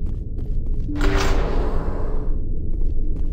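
A heavy door slides open with a loud hiss.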